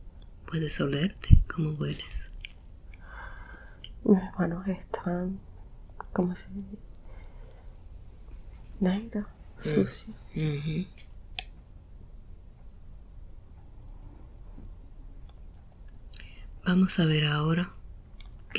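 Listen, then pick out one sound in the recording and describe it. A young woman mumbles sleepily in short bursts, close by.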